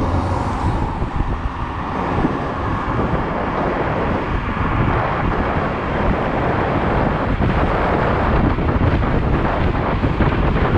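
Wind rushes and buffets against a microphone on an electric scooter riding at speed.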